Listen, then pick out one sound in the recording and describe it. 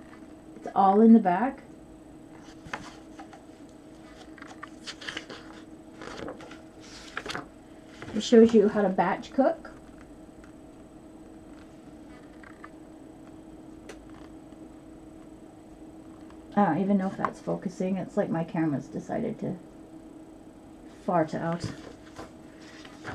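An older woman speaks calmly close to a microphone, in short bursts.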